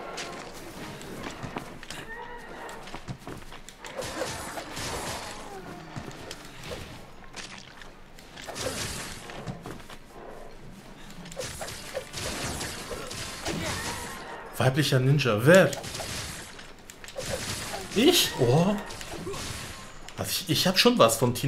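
Heavy blows thud and slash in a game fight.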